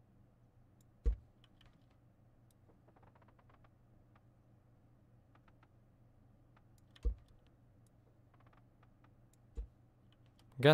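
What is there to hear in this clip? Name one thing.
Short clicks sound now and then as blocks snap into place in a game.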